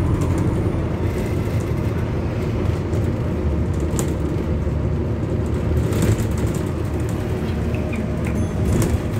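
Fittings rattle and click inside a moving city bus.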